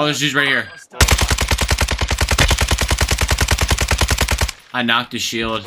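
A rifle fires rapidly in a long burst.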